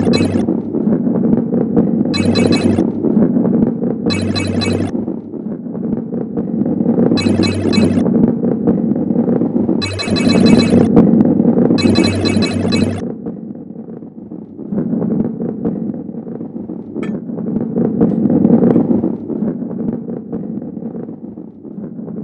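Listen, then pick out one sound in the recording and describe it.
A heavy ball rolls with a steady low rumble.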